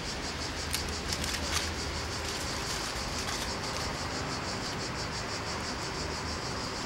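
Dry leaves and twigs rustle and crackle under hands.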